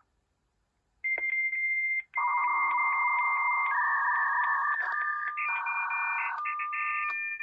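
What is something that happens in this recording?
A dial-up modem screeches and warbles loudly as it connects.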